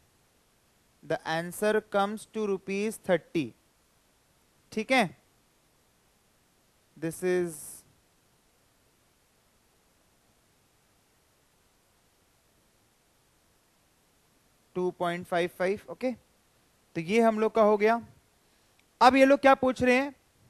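A young man explains calmly into a close microphone, pausing between phrases.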